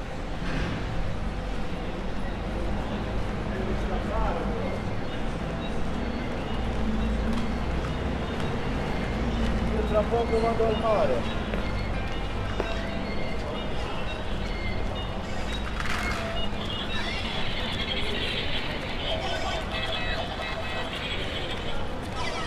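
People chatter in the distance outdoors.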